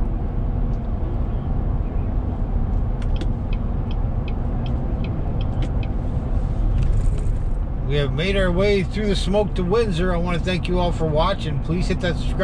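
A car engine hums and tyres roar steadily on a highway, heard from inside the car.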